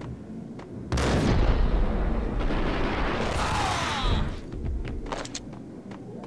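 Gunshots boom loudly in quick succession.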